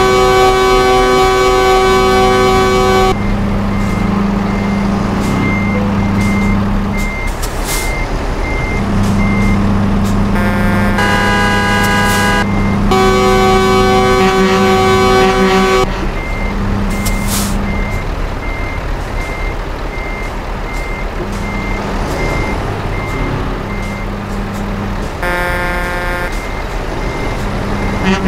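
A heavy truck engine rumbles steadily at low speed.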